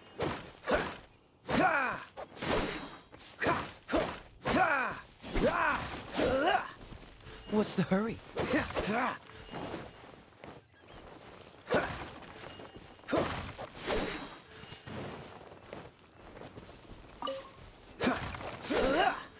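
A sword swishes and slashes repeatedly.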